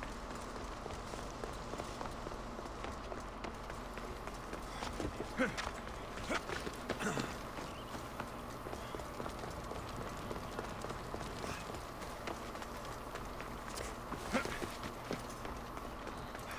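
Footsteps run across stone paving.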